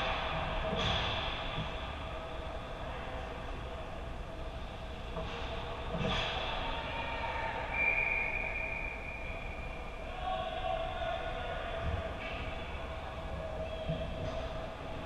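A hockey stick knocks on the ice now and then.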